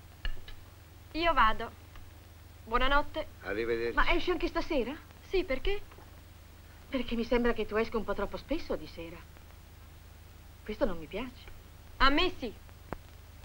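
A second woman answers with tension in her voice.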